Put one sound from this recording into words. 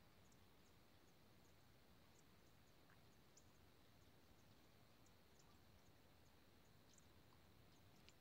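A deer rustles through tall dry grass.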